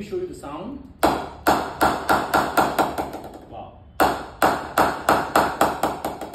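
A wooden mallet knocks sharply and rhythmically on a wooden bat.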